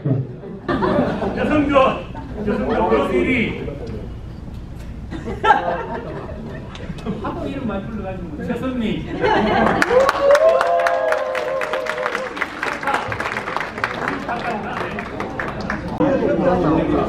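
An elderly man speaks into a microphone, heard over a loudspeaker in an echoing room.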